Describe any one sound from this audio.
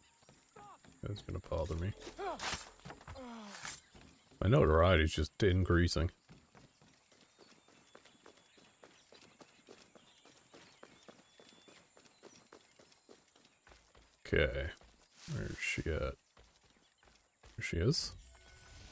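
Quick footsteps run over hollow wooden boards and then onto dirt.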